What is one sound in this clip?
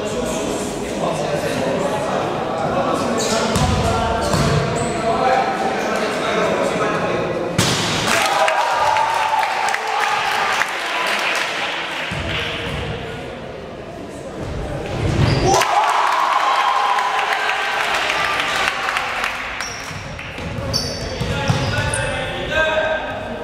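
Young players shout and call out in a large echoing hall.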